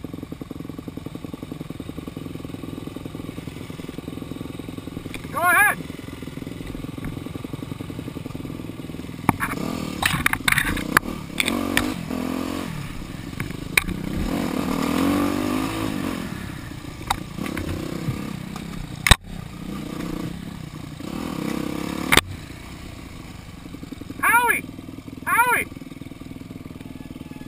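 A dirt bike engine idles and revs up close.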